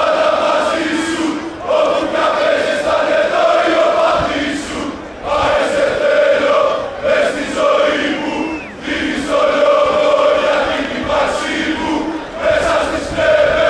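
A large crowd of fans chants loudly in unison outdoors.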